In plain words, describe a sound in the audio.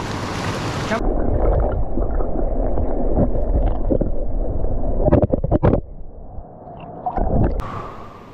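Water gurgles and rumbles, heard from underwater.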